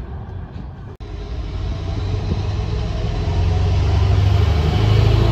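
A train's engine hums nearby, growing louder.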